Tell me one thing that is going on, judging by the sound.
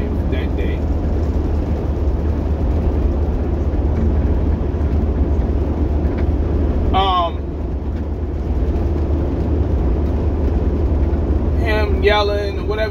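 A vehicle engine rumbles steadily from inside a cab.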